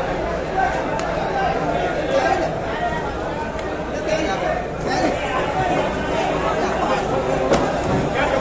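A cleaver chops into a wooden block with sharp thuds.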